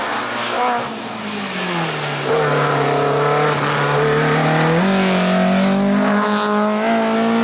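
A rally car engine roars loudly as it approaches, shifting gears and revving up.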